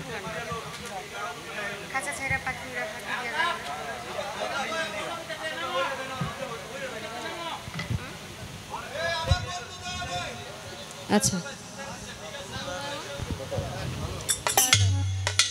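A young man speaks with animation through a microphone and loudspeakers.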